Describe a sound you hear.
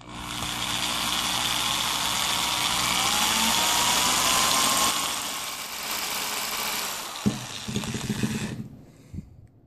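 A cordless drill whirs steadily.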